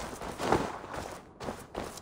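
A heavy weapon swings through the air with a whoosh.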